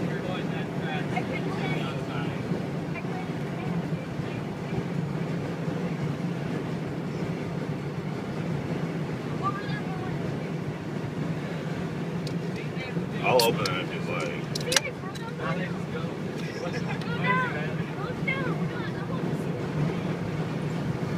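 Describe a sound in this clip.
A car engine hums steadily as it drives along a highway.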